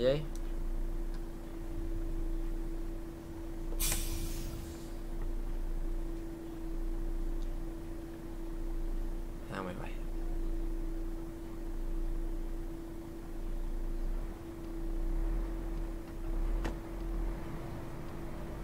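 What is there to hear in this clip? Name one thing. A bus engine hums steadily at idle.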